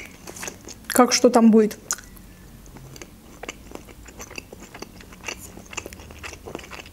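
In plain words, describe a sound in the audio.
A young woman chews food with soft, wet mouth sounds close to a microphone.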